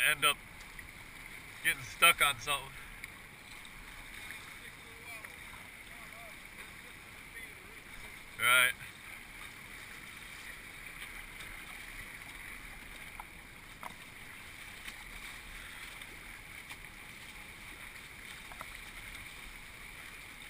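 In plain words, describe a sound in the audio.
Rushing river water churns and roars steadily close by.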